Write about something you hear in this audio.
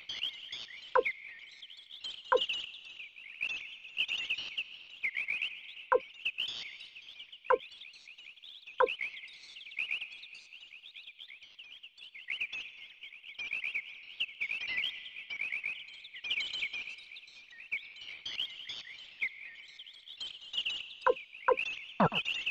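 Short electronic menu beeps sound as a selection changes.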